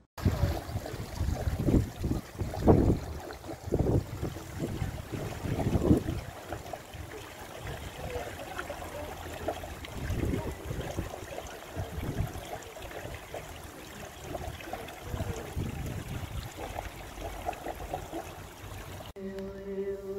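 Water trickles and splashes steadily into a pool outdoors.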